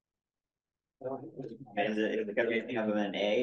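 A man speaks calmly through an online call.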